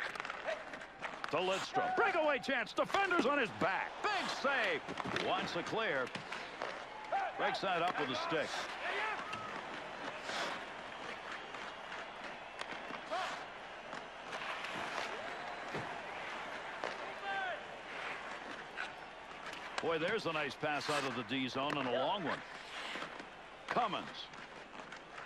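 Skates scrape and hiss on ice.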